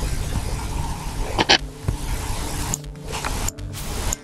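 A short game pop sounds as an item is picked up.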